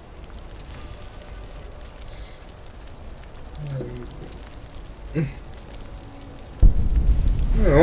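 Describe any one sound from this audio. Flames roar and crackle in a burst of fire.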